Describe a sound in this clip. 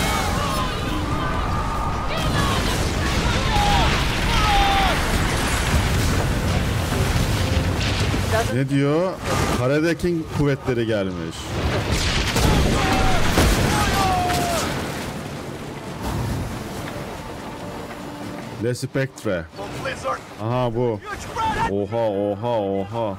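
Stormy waves crash and rush around a ship.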